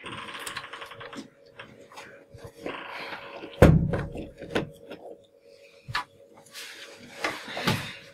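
A man speaks calmly to a room.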